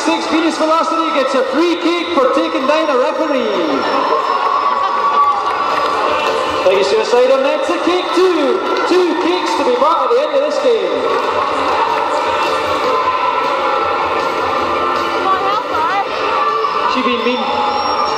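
Roller skate wheels squeak sharply on a hard floor in a large echoing hall.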